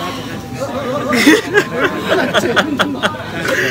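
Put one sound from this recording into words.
Young men laugh loudly close by.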